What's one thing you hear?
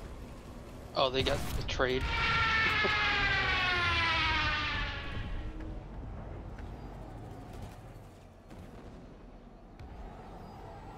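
A hovering vehicle's engine starts up with a whoosh and hums in a high whine that slowly fades.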